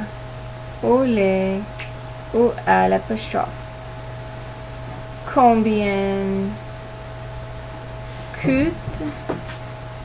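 A woman speaks slowly and clearly into a microphone, with pauses.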